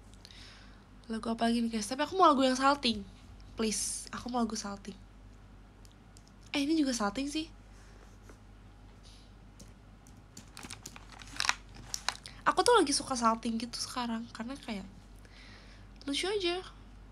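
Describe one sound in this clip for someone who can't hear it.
A young woman speaks casually and close by, in short bursts with pauses.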